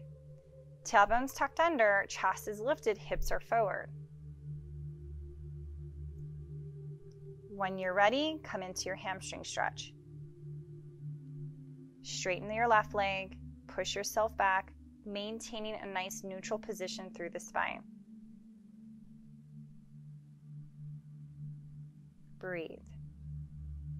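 A woman speaks calmly and clearly close to a microphone, giving instructions.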